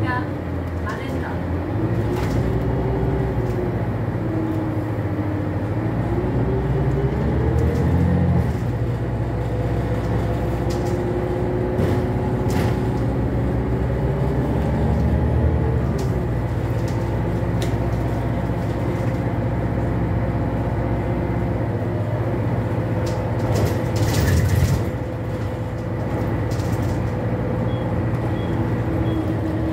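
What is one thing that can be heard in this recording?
A bus engine hums and whines as the bus drives along.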